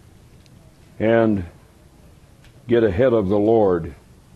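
A middle-aged man speaks slowly into a microphone, drawing out his words.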